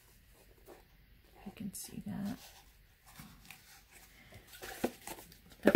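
A spool of ribbon is turned in the hands with soft rustling and tapping.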